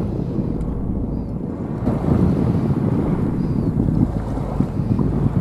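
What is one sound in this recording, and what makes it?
Waves wash gently against the shore.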